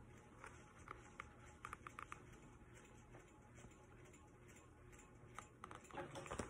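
Book pages rustle and flap as they turn.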